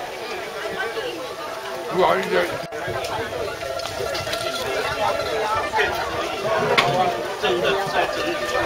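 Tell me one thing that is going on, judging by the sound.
A crowd of elderly men and women chatter nearby outdoors.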